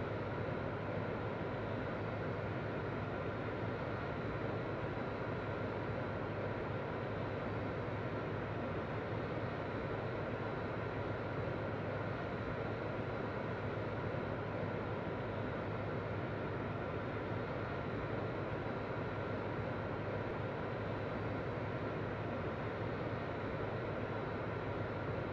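Jet engines roar in a steady, even drone.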